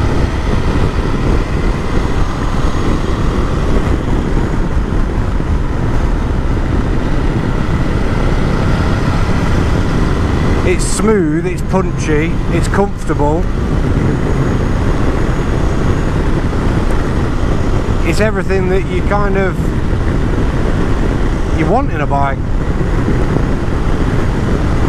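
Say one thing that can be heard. A motorcycle engine hums steadily as it cruises.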